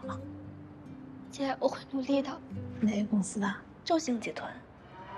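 A young woman answers softly.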